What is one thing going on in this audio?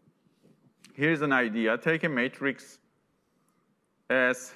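A man speaks calmly through a microphone, as if lecturing.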